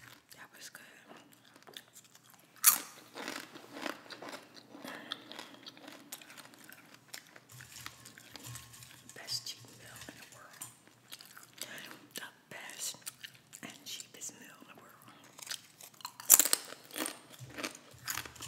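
A spoon scrapes and taps in a cup close by.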